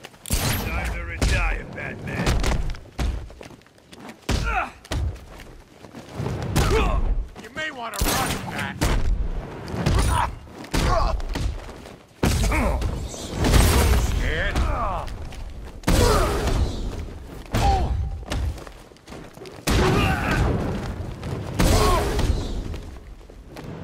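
Heavy punches and kicks thud again and again in a fast brawl.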